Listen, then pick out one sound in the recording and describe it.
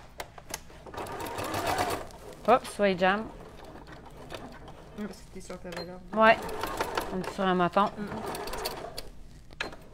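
A sewing machine runs, stitching in short bursts.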